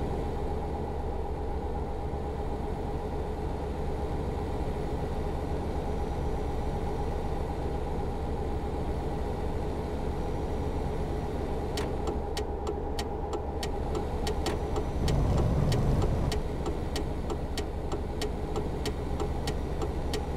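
A truck engine drones steadily while driving on a road.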